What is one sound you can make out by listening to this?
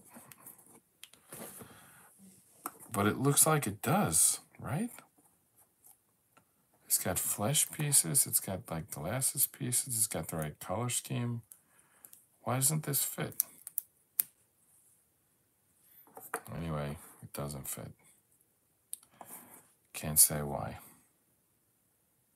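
Jigsaw puzzle pieces click softly as they are pressed into place.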